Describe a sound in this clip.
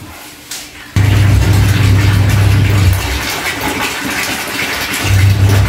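Water runs from a tap into a plastic basin.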